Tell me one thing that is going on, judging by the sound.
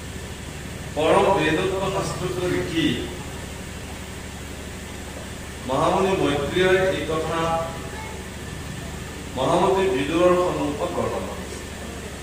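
A young man chants through a microphone in short phrases, with long pauses between.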